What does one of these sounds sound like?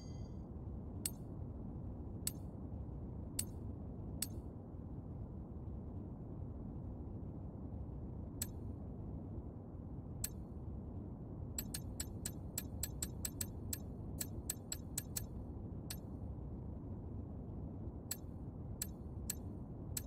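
Short soft clicks tick as menu selections change.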